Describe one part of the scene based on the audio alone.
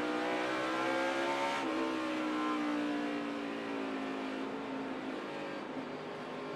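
A race car engine roars loudly close by, dropping sharply in pitch as it slows and then slowly winding down.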